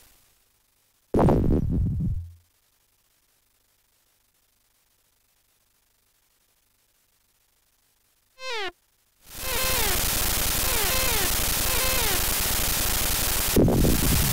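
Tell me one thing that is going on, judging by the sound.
A sword swishes through the air in a retro video game.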